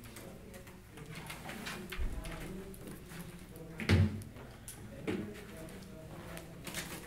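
Footsteps cross a room.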